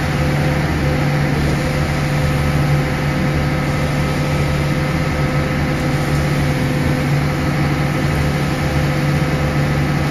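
A concrete mixer truck's engine rumbles loudly and steadily close by.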